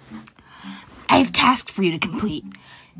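A young voice speaks quickly with animation, as if through a microphone.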